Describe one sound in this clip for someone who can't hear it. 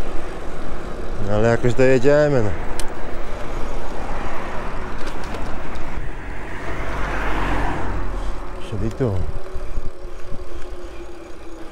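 Wind rushes steadily past while cycling outdoors.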